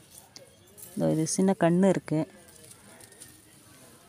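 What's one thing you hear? A hand rustles through leafy plants.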